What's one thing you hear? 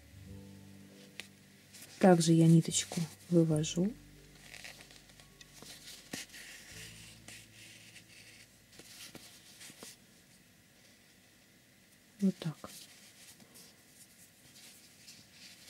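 Yarn and crocheted fabric rustle softly as they are handled.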